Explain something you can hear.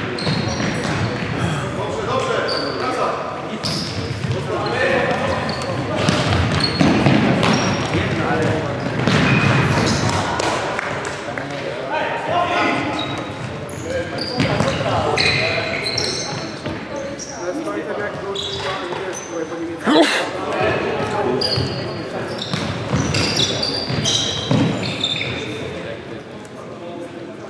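Sneakers squeak on a wooden floor, echoing in a large hall.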